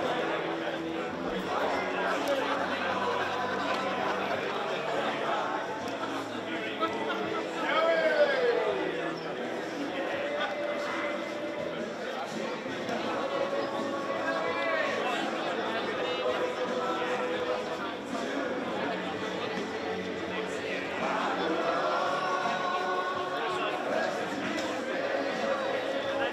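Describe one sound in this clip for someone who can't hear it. A crowd of players chatter and cheer outdoors in the distance.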